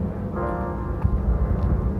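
Footsteps pass close by on a wooden deck.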